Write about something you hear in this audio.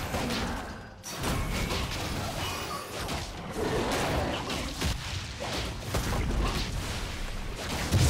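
Game sound effects of spells and strikes burst and whoosh.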